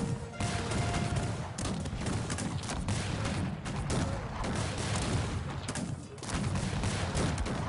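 Horses' hooves thud and rumble.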